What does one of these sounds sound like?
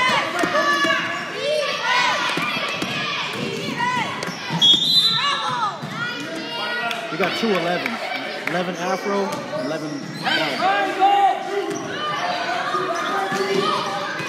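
Spectators shout and cheer loudly in an echoing gym.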